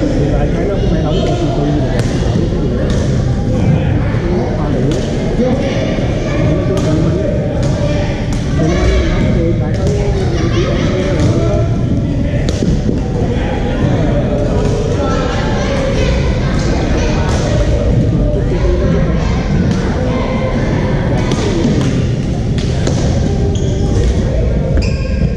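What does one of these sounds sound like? Paddles strike balls with sharp pops.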